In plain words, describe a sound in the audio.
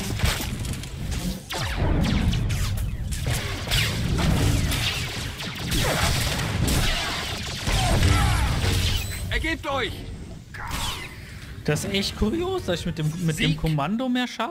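A laser sword hums and clashes with loud swooshes.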